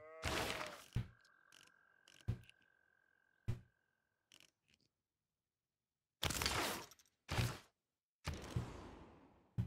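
Soft whooshes and clicks of a game's menus sound now and then.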